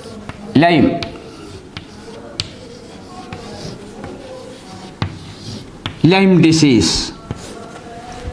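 Chalk taps and scrapes on a chalkboard.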